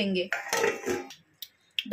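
A metal lid clinks onto a pot.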